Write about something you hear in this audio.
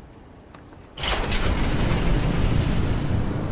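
Steam hisses loudly from a heavy metal door as it opens.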